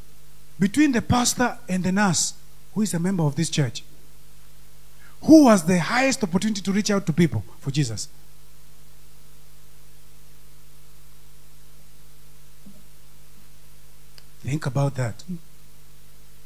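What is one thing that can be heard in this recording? A man preaches with animation into a microphone, heard through loudspeakers.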